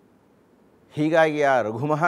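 An elderly man chants in a sustained, melodic voice.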